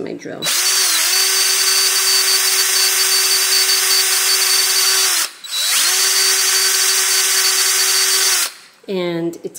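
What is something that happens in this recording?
A power drill whirs steadily at high speed.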